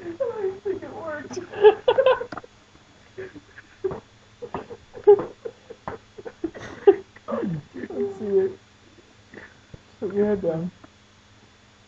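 A young man laughs loudly close to the microphone.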